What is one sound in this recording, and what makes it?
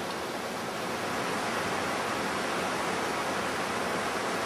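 A mountain stream rushes over rocks in the distance.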